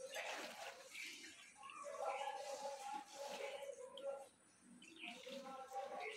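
Wet concrete slops out of a pan onto a surface.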